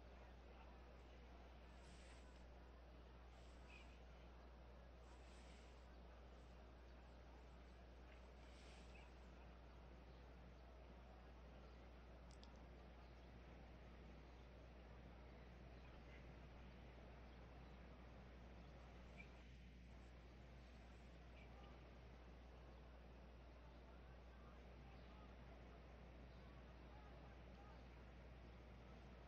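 A large crowd murmurs softly in the distance.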